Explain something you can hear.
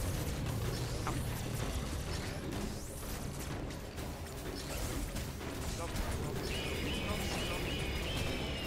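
Blaster shots fire rapidly.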